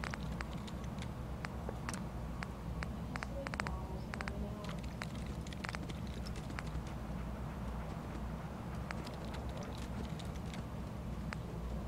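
Short electronic clicks tick again and again as menu items change.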